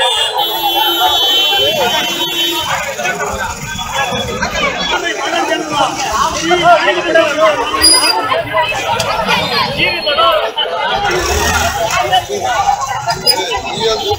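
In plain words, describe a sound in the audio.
A crowd of young women and men talk and shout together outdoors.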